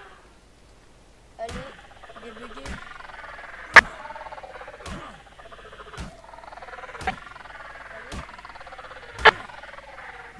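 Sharp blows strike a creature.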